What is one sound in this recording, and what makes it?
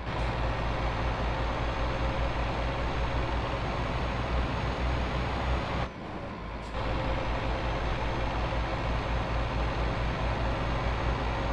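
A simulated heavy truck's diesel engine drones while cruising on a road.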